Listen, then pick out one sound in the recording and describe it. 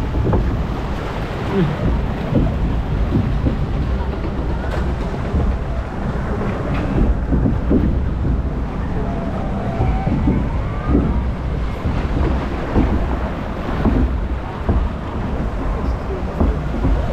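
Water rushes and churns.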